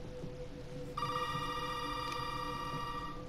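A desk telephone handset is lifted from its cradle.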